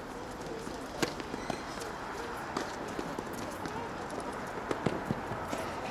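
A racket strikes a tennis ball with a sharp pop.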